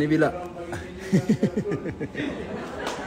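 A young man laughs into a microphone.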